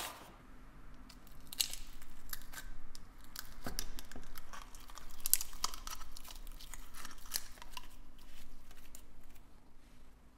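A plastic lid squeaks and scrapes as hands twist it.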